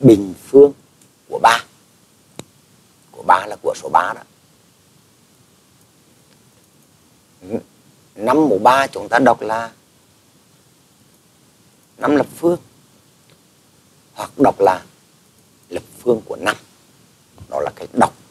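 A man speaks calmly into a microphone, explaining in short phrases.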